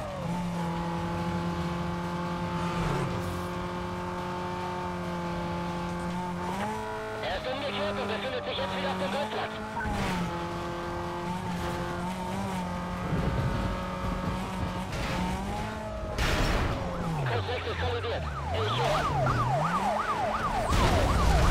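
A race car engine roars at high speed, its pitch rising and falling with gear changes.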